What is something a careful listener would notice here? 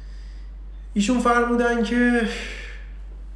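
A young man speaks briefly and calmly close by.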